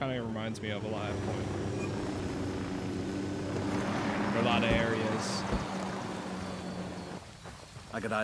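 A helicopter's rotor thumps and its engine drones steadily, then falls quiet.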